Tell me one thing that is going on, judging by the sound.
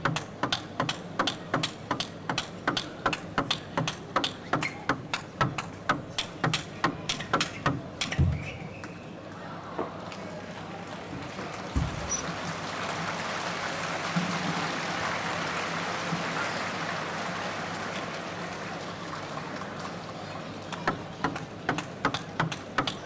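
A crowd claps in a steady, fast rhythm.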